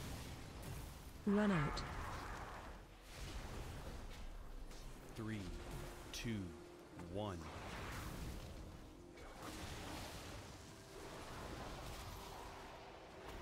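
Magical spell effects whoosh and crackle in a fast battle.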